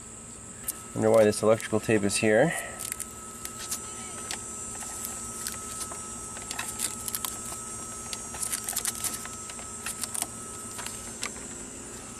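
A cable clamp clicks and rattles faintly.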